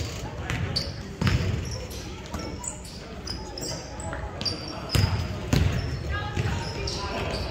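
Sneakers squeak sharply on the wooden court.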